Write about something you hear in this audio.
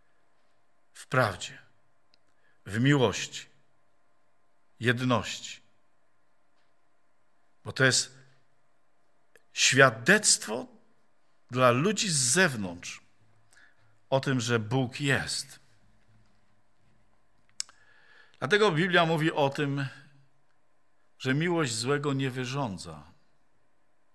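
An elderly man preaches forcefully into a microphone, in short bursts with pauses.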